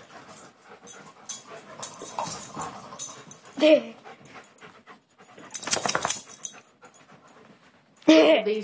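A dog's claws scrabble and tap on a hard floor.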